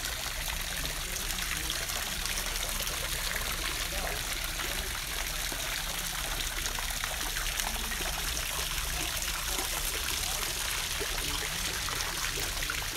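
Water from a fountain trickles down stone steps into a basin.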